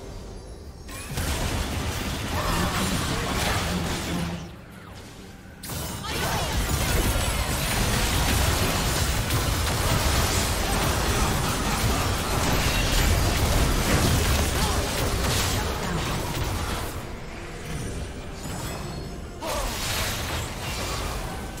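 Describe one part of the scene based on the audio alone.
Game spells burst and weapons clash in a busy fight.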